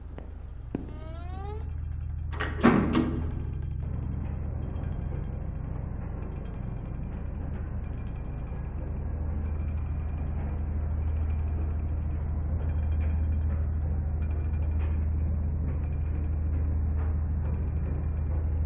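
An elevator hums steadily and low.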